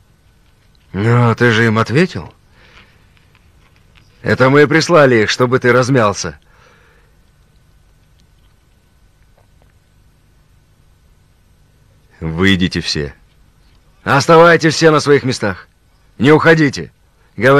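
A middle-aged man speaks close by in a low, tense voice.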